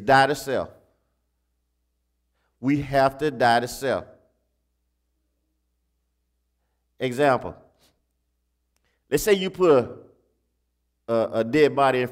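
A man speaks slowly and deliberately in short phrases with pauses, heard through a microphone.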